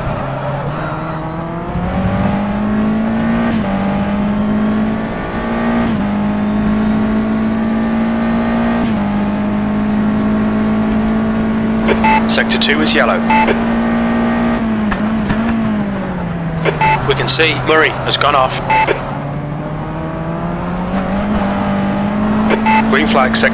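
A race car engine whines at high revs, shifting gears up and down.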